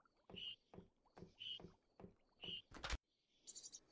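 Footsteps tap lightly on a wooden floor.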